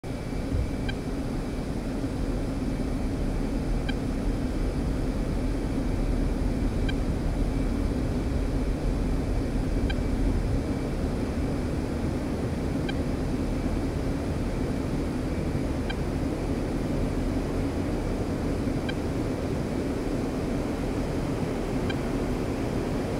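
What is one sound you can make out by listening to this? A jet engine rumbles and whines steadily nearby.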